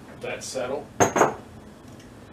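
A glass knocks down onto a wooden counter.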